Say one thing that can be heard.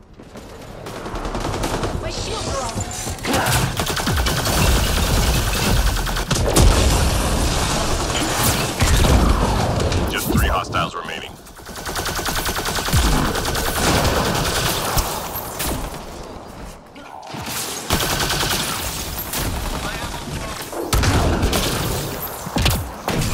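Gunfire bursts out in quick rattling volleys.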